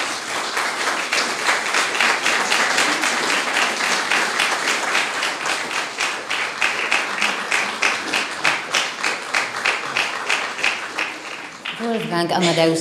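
An audience claps steadily and loudly.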